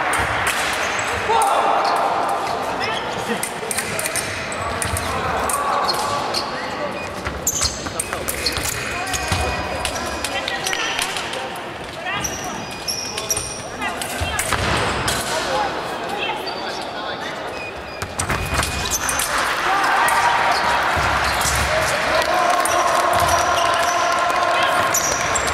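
Fencers' shoes squeak and stamp on a wooden floor in a large echoing hall.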